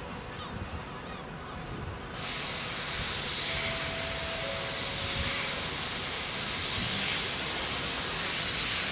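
Train wheels rumble and squeal on the rails.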